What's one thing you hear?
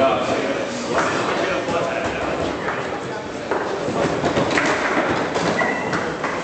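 A foosball ball knocks sharply against plastic players and the table walls.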